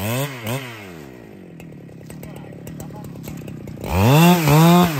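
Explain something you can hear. A chainsaw engine idles with a low putter.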